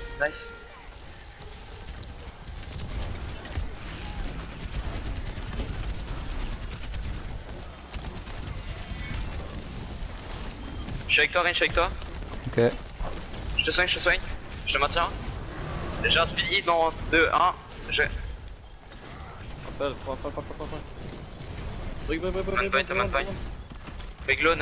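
Video game weapons fire with rapid blasts and electric zaps.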